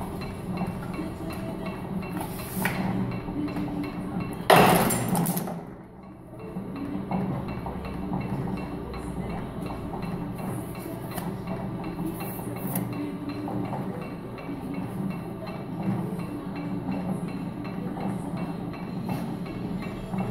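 A can bodymaker machine hums as it runs.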